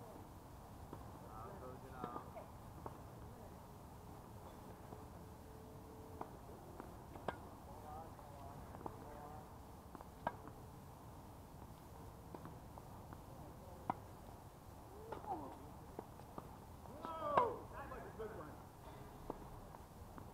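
Tennis balls are struck with rackets, with sharp pops.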